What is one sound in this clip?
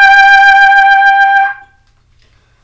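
A trumpet plays a steady held note, close by.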